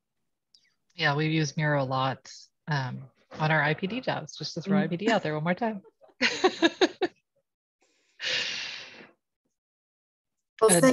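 A woman speaks calmly through a microphone on an online call.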